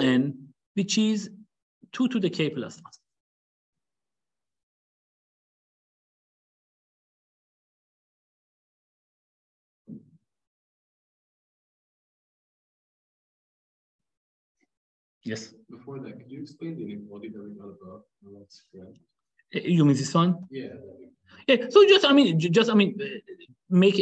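A young man speaks calmly into a microphone, explaining with pauses.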